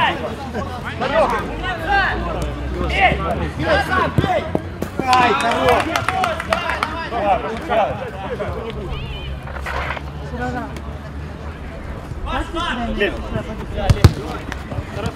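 Men shout and call out across an open outdoor pitch.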